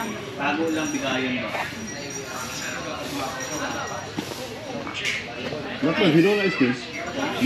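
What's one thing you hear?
Women chat casually nearby.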